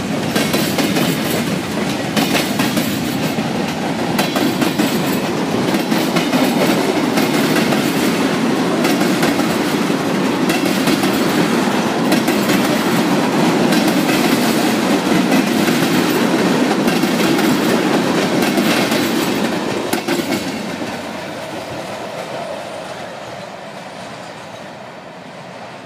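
A freight train rolls past close by on steel rails and fades as it moves away.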